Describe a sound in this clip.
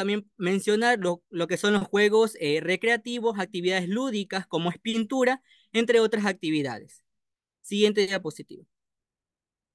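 A young man speaks calmly through an online call microphone.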